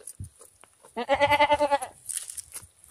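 A goat bleats loudly nearby.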